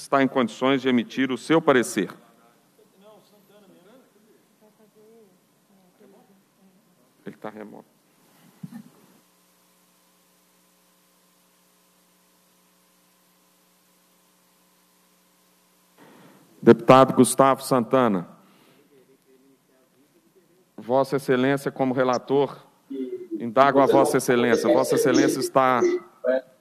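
A middle-aged man speaks formally into a microphone.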